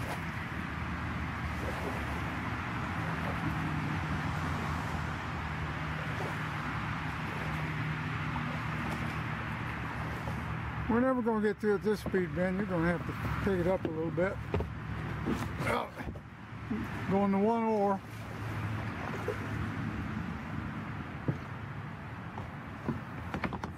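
Water laps gently against the hull of a moving kayak.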